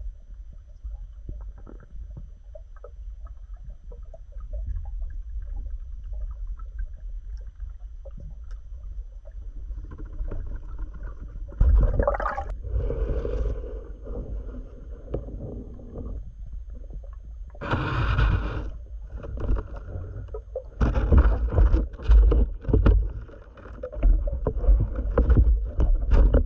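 Water rumbles low and muffled, as if heard from underwater.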